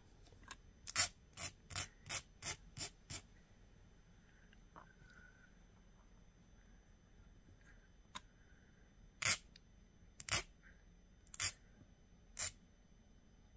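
A metal file rasps in short, even strokes.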